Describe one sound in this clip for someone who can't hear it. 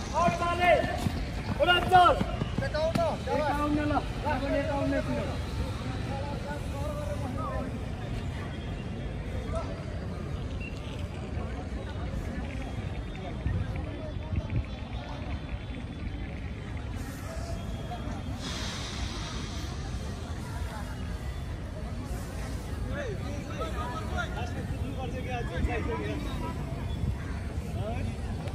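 Young men talk and call out nearby, outdoors in an open space.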